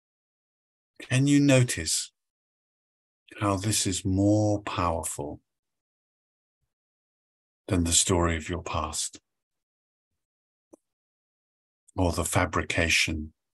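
An older man speaks calmly in short phrases over an online call.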